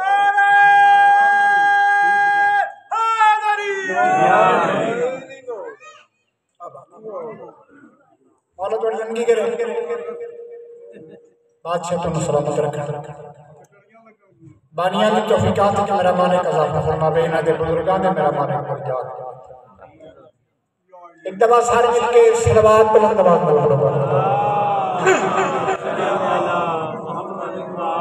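A middle-aged man speaks with feeling into a microphone, his voice amplified through loudspeakers.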